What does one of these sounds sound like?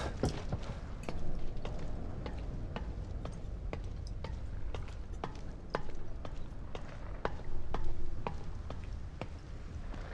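Hands and feet clank on a metal ladder.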